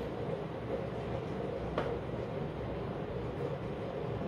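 Hands handle a sewing machine with soft clicks.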